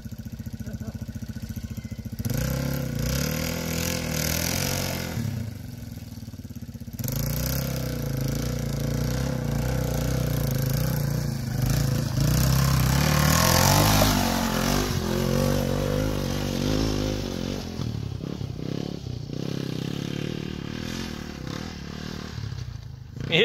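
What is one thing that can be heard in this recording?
A dirt bike engine revs and sputters as it climbs a rocky slope.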